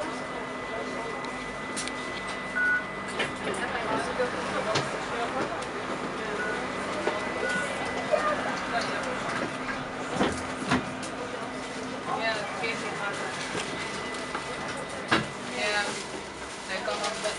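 A bus engine hums steadily while the bus rolls along.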